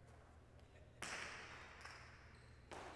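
A hard ball smacks against a wall and echoes through a large hall.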